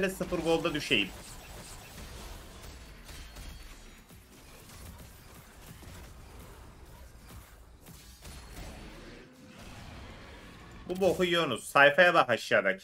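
Fantasy battle sound effects clash, zap and whoosh.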